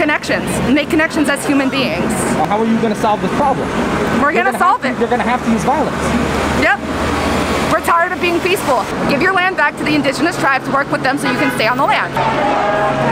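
A young woman speaks earnestly and close by.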